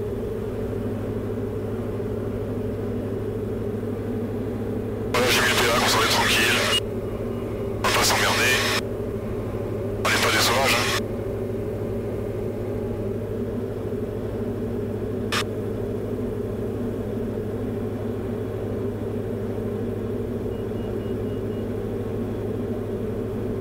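A small airplane engine drones steadily throughout.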